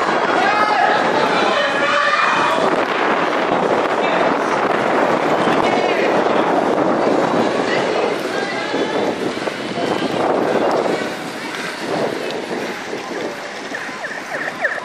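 Inline skate wheels roll and rumble over rough pavement close by.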